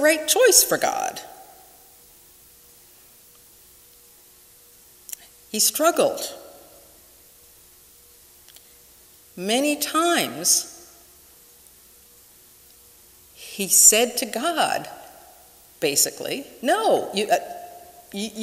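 A middle-aged woman speaks slowly with long pauses into a microphone, in an echoing room.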